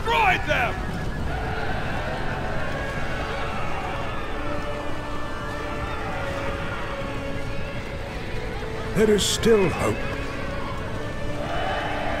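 Horses' hooves thunder in a crowded charge.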